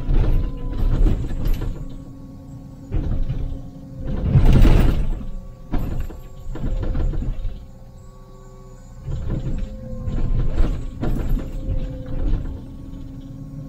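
An excavator engine hums steadily from inside the cab.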